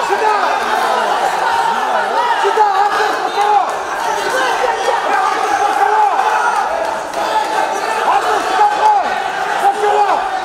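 A crowd of spectators chatters and calls out in a large echoing hall.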